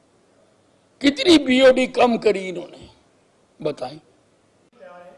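An elderly man speaks firmly into a microphone.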